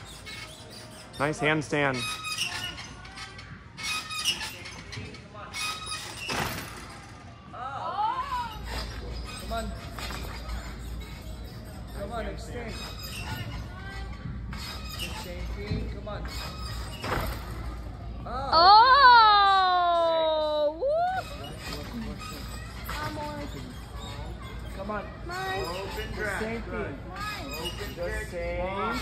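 Metal bars rattle and clank as a gymnast swings on them.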